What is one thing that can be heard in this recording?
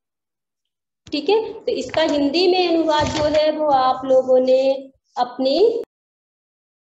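A woman speaks with animation through a phone microphone.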